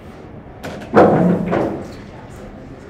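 Pool balls knock together and thud into a pocket.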